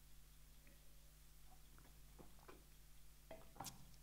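A mug is set down on a table with a knock.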